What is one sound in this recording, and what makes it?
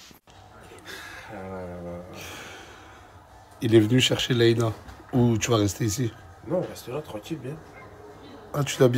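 A man speaks close to a phone microphone, with animation.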